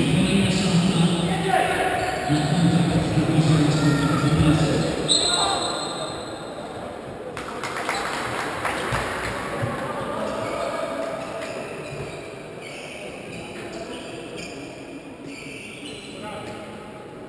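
A crowd of spectators chants and cheers in a large echoing hall.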